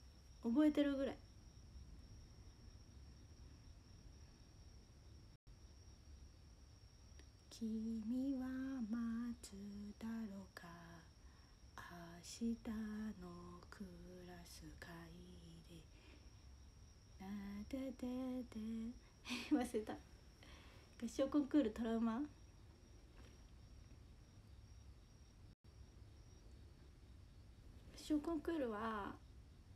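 A young woman talks calmly and softly, close to the microphone, in short bursts with pauses.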